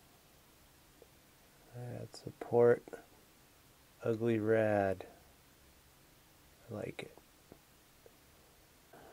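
Metal tweezers click faintly against a small plastic part.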